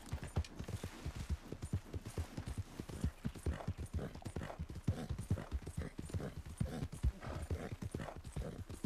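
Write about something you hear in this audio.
Horse hooves thud rapidly on grass at a gallop.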